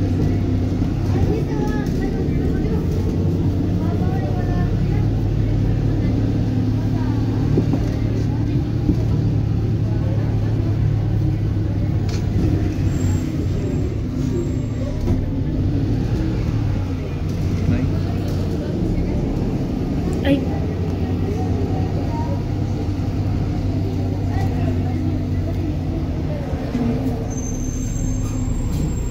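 A vehicle engine hums steadily from inside, heard while driving.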